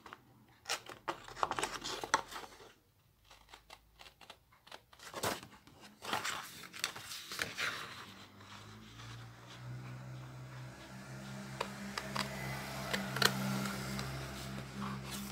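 Stiff paper sheets rustle and crinkle as they are handled.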